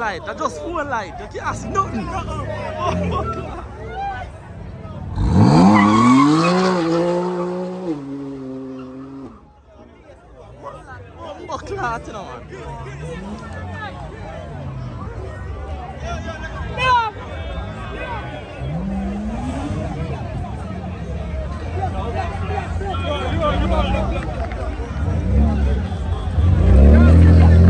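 A crowd of young people shouts and cheers outdoors.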